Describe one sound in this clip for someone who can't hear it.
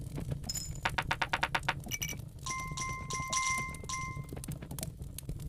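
Coins clink with bright ringing chimes.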